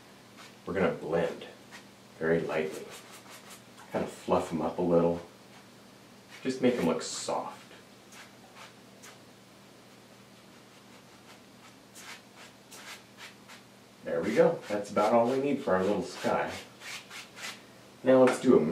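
A brush taps and scrapes lightly on paper.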